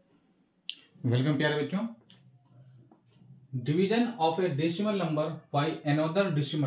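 A man speaks calmly and clearly into a clip-on microphone, like a teacher explaining.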